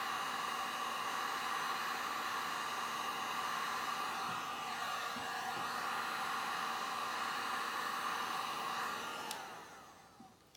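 A heat gun blows with a steady whirring hiss.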